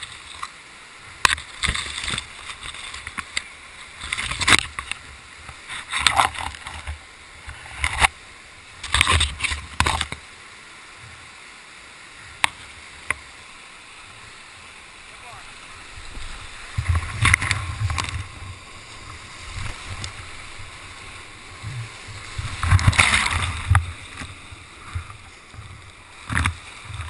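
White water rushes and roars over rapids close by.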